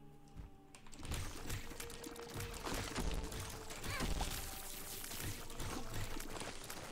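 Video game sound effects pop and splatter in quick bursts.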